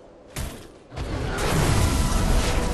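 A loud, shimmering magical whoosh swells and rumbles in a video game.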